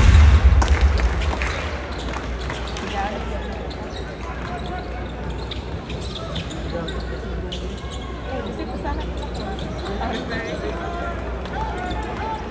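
A large crowd murmurs and cheers in a big echoing arena.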